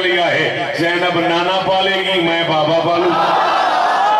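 A man chants loudly through a microphone and loudspeakers.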